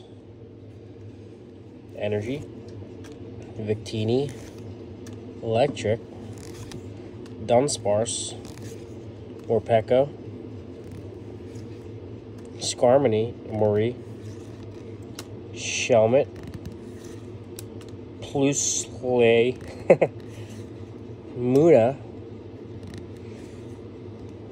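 Trading cards slide and rustle against each other in a hand.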